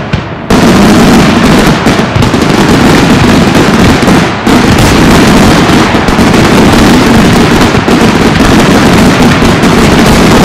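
Fireworks crackle and bang in a rapid, continuous barrage overhead.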